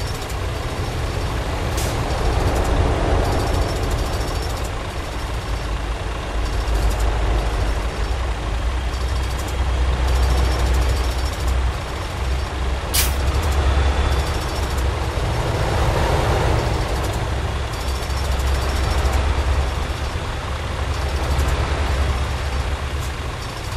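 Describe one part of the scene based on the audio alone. A heavy truck engine idles close by with a low rumble.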